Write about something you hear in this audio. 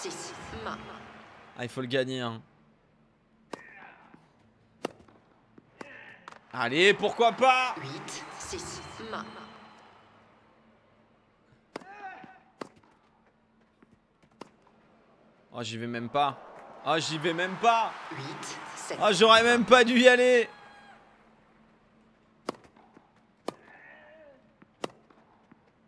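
A tennis ball is struck with sharp pops, back and forth.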